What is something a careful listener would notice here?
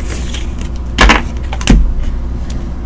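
Stiff cards slap and tap onto a table.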